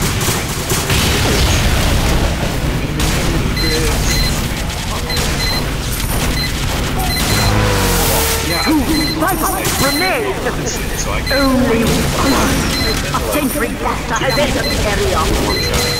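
Explosions boom in heavy bursts.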